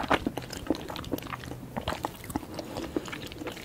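A spoon clinks against a bowl and scrapes through soup.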